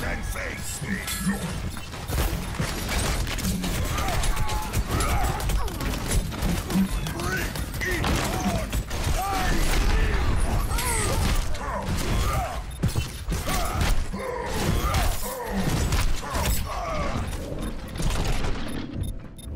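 Rapid gunfire rattles in dense bursts.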